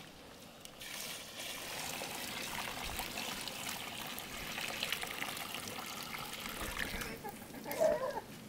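Water pours from a bucket onto a heap of cement.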